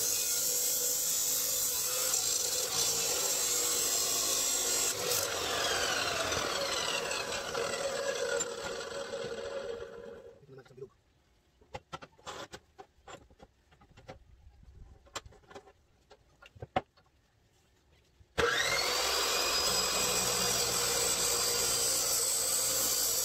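A cut-off saw grinds loudly through metal.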